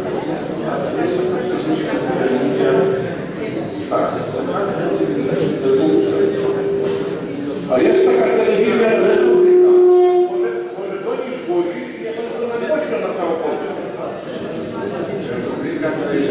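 A man speaks loudly to an audience in a large echoing hall.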